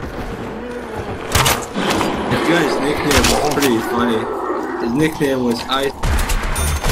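A zombie groans and snarls close by.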